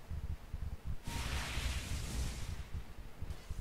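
Magical spell effects whoosh and crackle during a fight.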